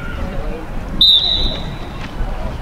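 A referee blows a short, sharp whistle.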